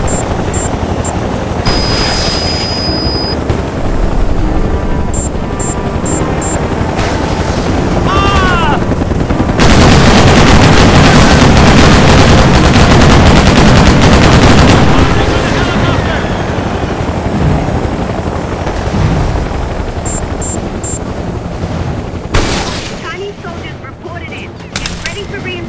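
A helicopter's rotor thumps and drones steadily.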